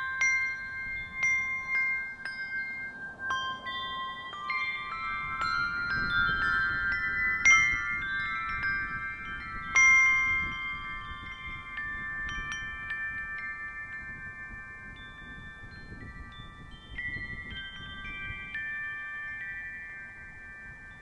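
Handbells ring out a slow melody, each note ringing on and fading.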